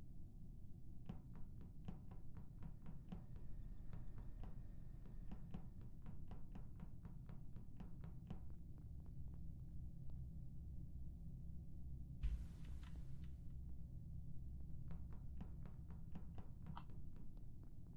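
Quick, light footsteps tap steadily.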